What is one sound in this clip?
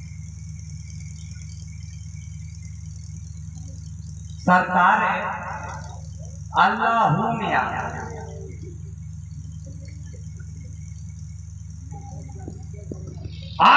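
A low electrical hum drones steadily from a sound system.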